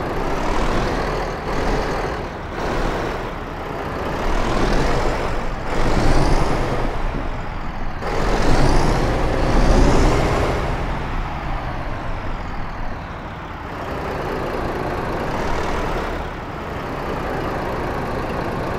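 A heavy truck engine rumbles steadily as the truck rolls slowly along.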